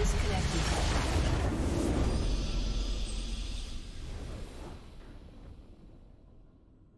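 A triumphant fanfare swells and fades out.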